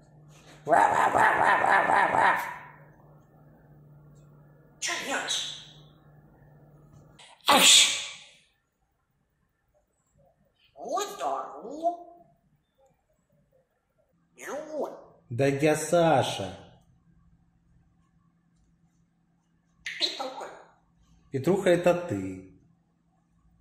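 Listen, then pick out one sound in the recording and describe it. A parrot squawks and chatters close by in short bursts.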